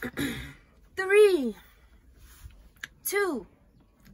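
A woman lets out drawn-out exclamations that fall in pitch.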